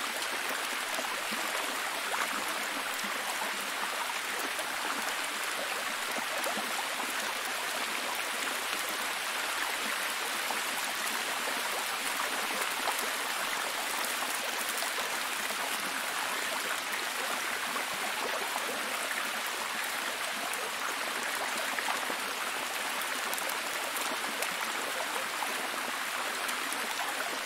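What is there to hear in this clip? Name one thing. A waterfall splashes steadily over rocks.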